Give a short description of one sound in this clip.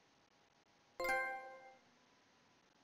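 A short electronic notification chime rings.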